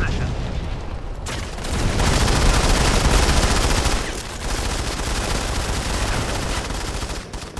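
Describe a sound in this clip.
A man talks into a close microphone.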